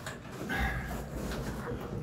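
Footsteps scuff on a rocky cave floor.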